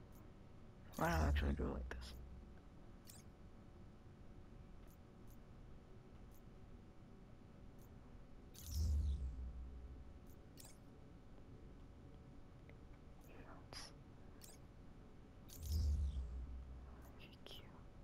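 Soft low whooshes sound as menus change.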